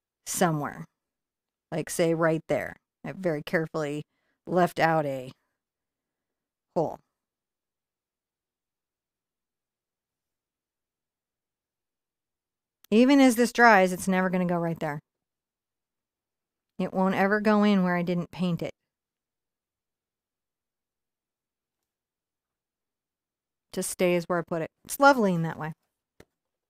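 An elderly woman speaks calmly and close to a microphone, in short bursts with long pauses.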